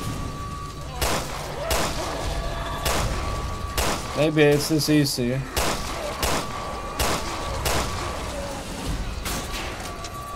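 A pistol fires several sharp shots in an echoing room.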